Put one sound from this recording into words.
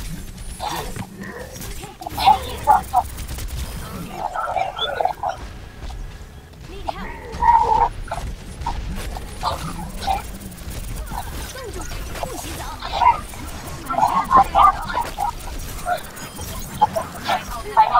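Game weapons fire in quick bursts.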